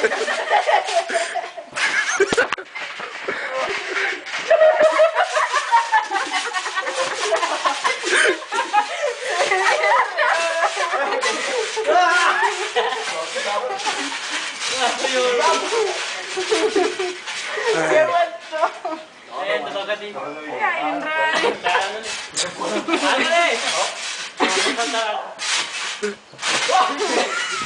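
Young men laugh and shout with excitement close by.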